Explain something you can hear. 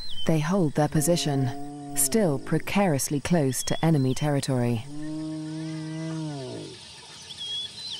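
Spotted hyenas whoop in rising and falling calls.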